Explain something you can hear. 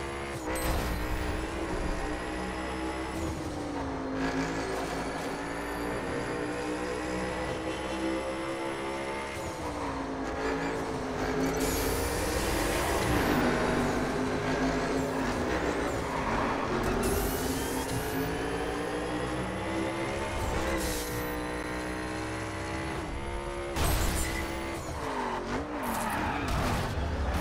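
A racing car engine roars at high speed, its pitch climbing and dropping sharply with each gear change.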